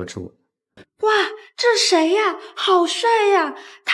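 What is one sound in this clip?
A young woman speaks up close with surprised excitement.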